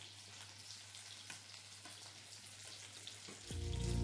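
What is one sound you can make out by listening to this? Water bubbles and boils in a pot.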